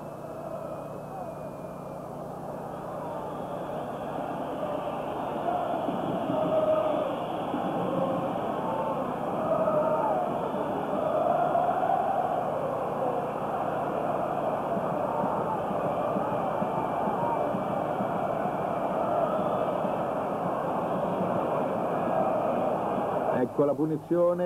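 A large stadium crowd roars and cheers, swelling louder.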